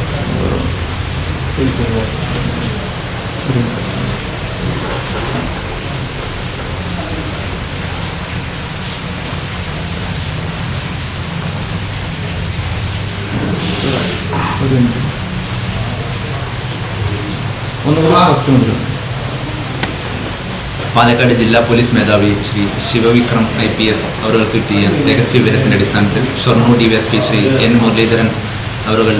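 A man speaks calmly and steadily to someone close by.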